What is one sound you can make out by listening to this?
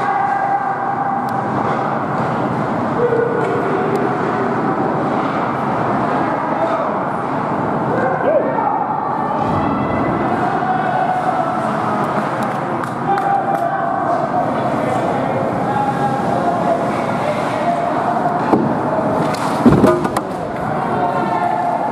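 Ice hockey skates scrape and carve across the ice in an echoing indoor arena.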